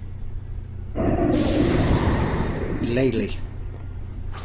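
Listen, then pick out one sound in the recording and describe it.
A huge creature lets out a loud, rumbling roar.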